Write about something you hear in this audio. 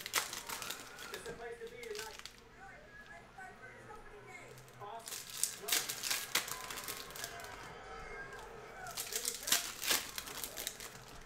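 Plastic wrappers crinkle and rustle as packs are torn open.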